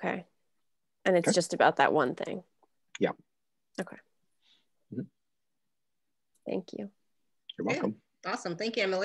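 A woman talks calmly over an online call.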